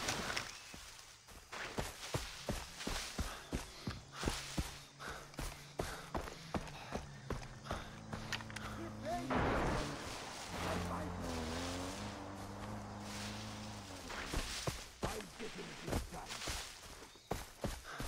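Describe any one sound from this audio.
Footsteps rustle through dense leaves and grass.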